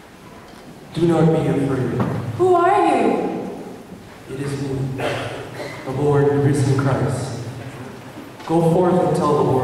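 A man sings through a loudspeaker in a large echoing hall.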